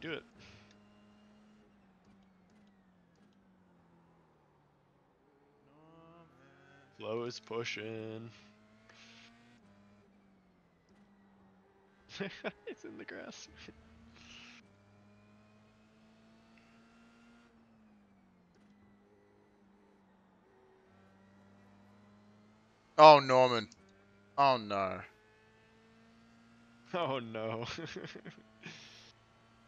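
A racing car engine drones steadily, rising and dropping in pitch as it shifts gears.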